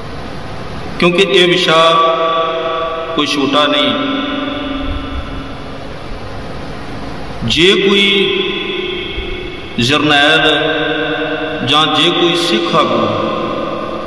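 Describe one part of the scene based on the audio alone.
A man speaks.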